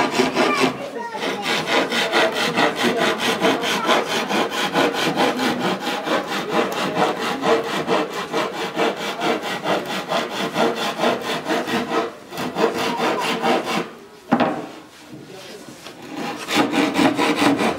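A hand tool scrapes rapidly and steadily against wood.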